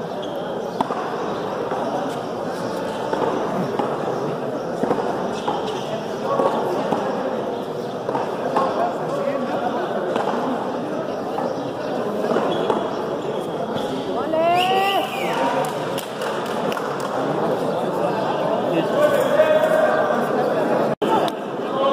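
Men call out to each other across a court.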